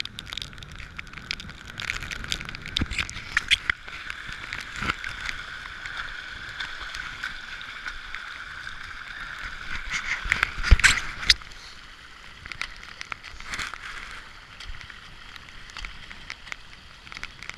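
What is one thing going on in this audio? Raindrops tap against the microphone.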